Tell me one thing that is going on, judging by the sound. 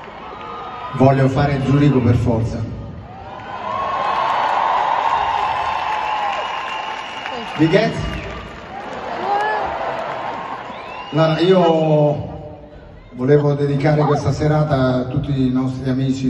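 A man sings through loudspeakers in a large echoing arena.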